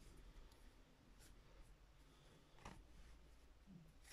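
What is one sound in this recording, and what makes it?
Playing cards tap softly as a deck is set down on a table.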